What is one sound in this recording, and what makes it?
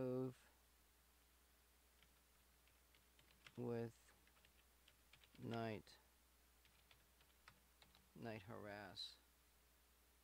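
A man speaks calmly into a close microphone in short phrases.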